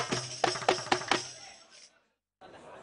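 Hand drums and a tambourine are beaten loudly in a quick rhythm.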